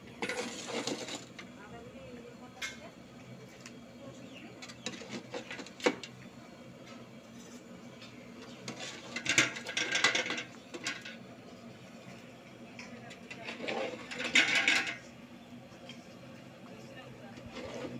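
A metal spatula scrapes and clanks against a wok.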